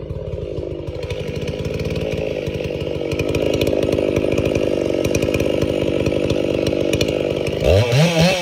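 A large chainsaw revs up and cuts through a log.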